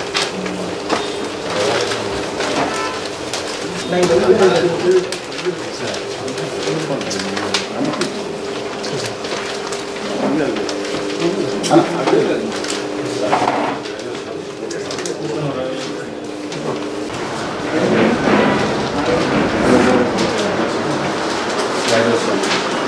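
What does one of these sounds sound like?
Paper rustles as leaflets are handled.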